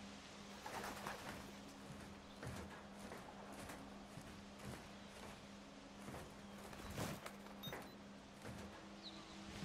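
Footsteps thud on a metal roof.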